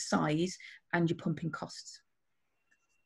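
A woman speaks with animation through an online call.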